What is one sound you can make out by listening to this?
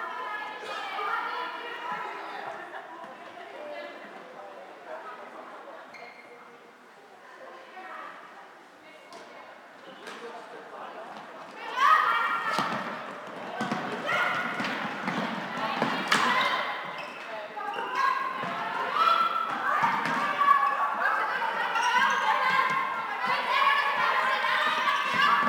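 Young women shout to each other across an echoing court.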